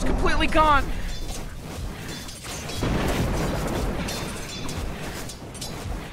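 Spells and weapons clash in a fast fantasy battle, with metallic hits and magical bursts.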